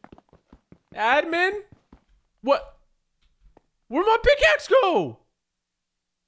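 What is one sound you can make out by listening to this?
A young man speaks with animation close to a headset microphone.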